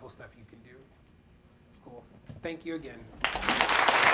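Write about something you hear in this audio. A man speaks to an audience through a microphone.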